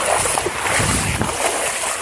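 Water rushes and splashes over the ground.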